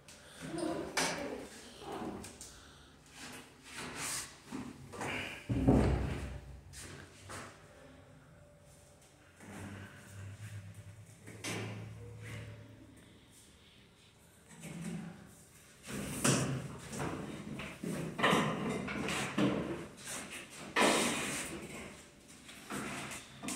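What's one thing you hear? Metal parts click and knock as a machine is handled.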